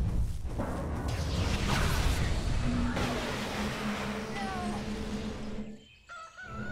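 Magic spells blast and crackle in a fierce fight.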